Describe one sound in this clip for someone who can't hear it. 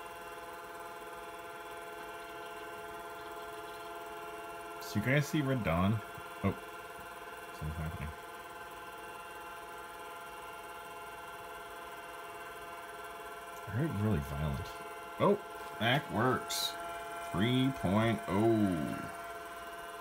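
An old computer monitor gives off a steady, high electrical whine.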